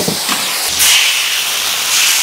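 Liquid pours into a hot pan and sizzles loudly.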